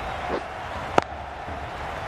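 A cricket bat cracks against a ball.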